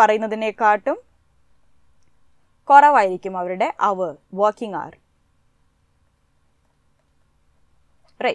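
A young woman speaks calmly into a close microphone, in short bursts with pauses.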